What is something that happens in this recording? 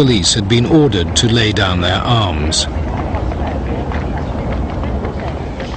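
A crowd of men murmurs outdoors.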